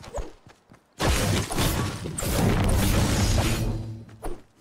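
A pickaxe strikes a rock with loud crunching blows.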